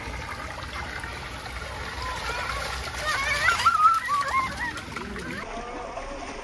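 Water splashes under small feet wading through a shallow stream.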